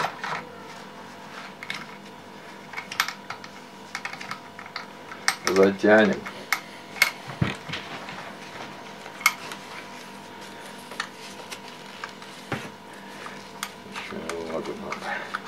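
Metal parts of a rifle click and clack as hands handle it.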